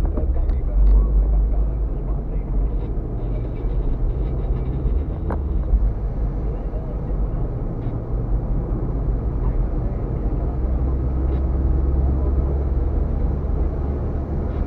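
A car's engine hums steadily.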